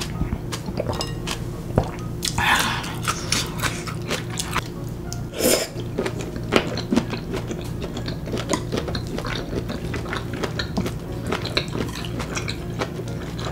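A young woman chews and slurps noodles loudly and close to a microphone.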